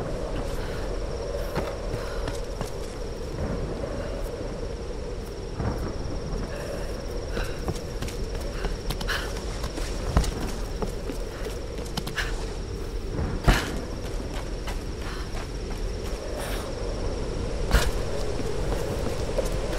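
Footsteps crunch on dirt and stone.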